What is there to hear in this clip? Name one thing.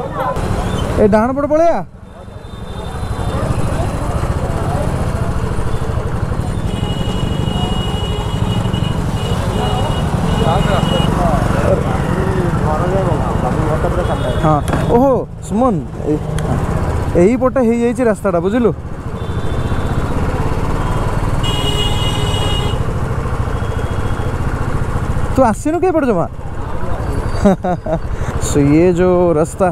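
A motorcycle engine rumbles steadily at low speed up close.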